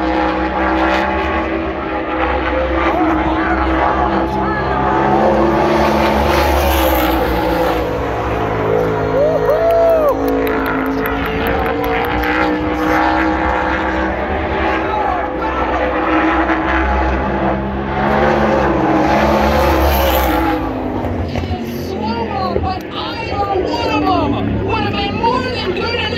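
Race car engines roar loudly around an outdoor track.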